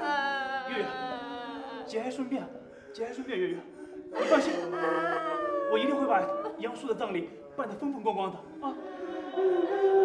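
A young woman sobs and cries.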